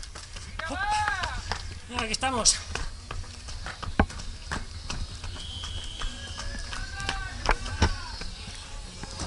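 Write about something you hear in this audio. Running footsteps slap on stone paths close by.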